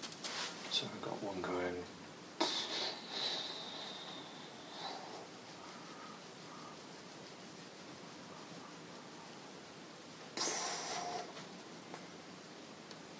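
A paintbrush dabs and scrapes softly on canvas.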